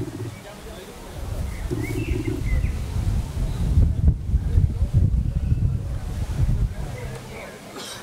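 Wind gusts rumble across an open field.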